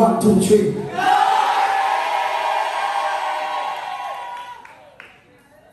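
A crowd cries out and praises loudly.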